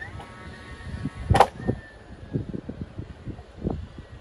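Tools knock and tap against wooden boards.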